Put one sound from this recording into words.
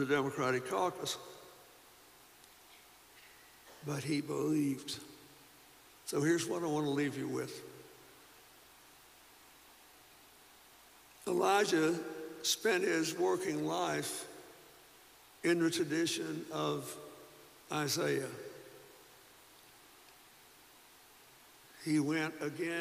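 An elderly man speaks slowly and deliberately into a microphone, with long pauses, his voice echoing in a large hall.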